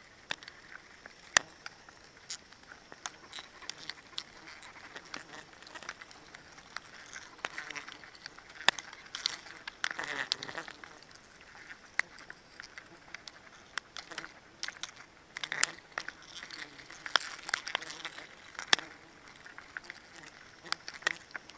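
Twigs and leaves rustle and snap as hands pull at them.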